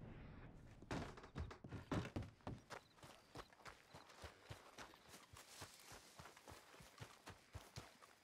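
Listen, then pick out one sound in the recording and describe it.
Footsteps crunch on grass and dirt outdoors.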